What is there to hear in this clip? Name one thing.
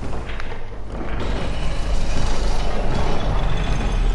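A metal lift gate clanks and rattles shut.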